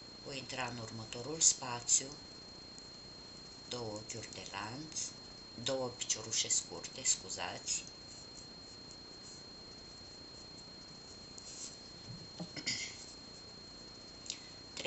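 Yarn rustles softly as it is pulled through a crochet hook.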